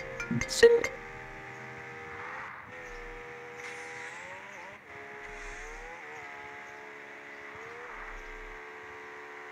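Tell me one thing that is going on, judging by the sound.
A car engine drones steadily, its pitch climbing and dropping with gear changes.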